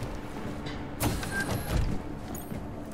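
A door opens with a heavy clunk.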